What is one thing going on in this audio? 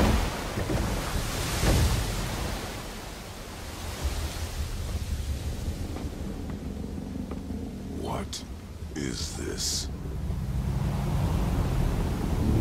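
Rough waves crash and roar.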